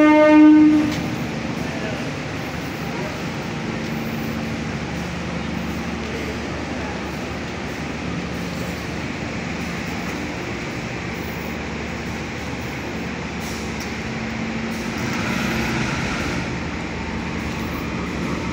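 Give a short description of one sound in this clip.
A train rumbles and clatters slowly along the track.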